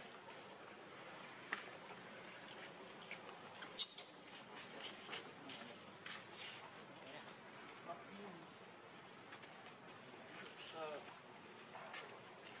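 A baby monkey squeaks softly a few times.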